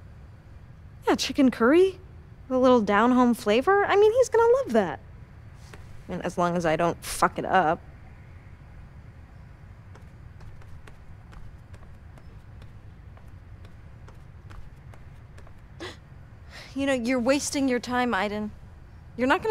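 A young woman speaks to herself close by, at times with animation.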